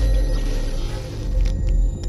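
Electricity crackles and sparks close by.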